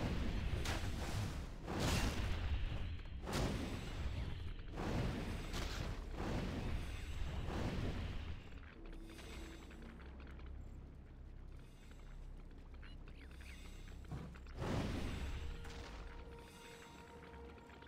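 Magic spells burst with whooshing blasts.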